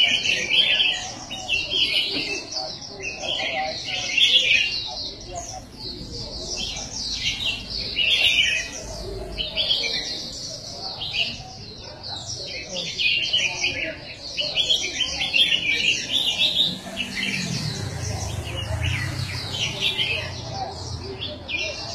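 Many small caged birds chirp and twitter busily.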